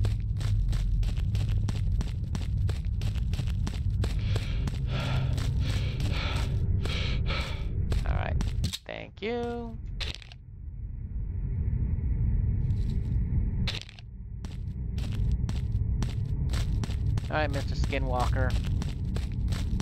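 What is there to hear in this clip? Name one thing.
Footsteps crunch steadily over the ground.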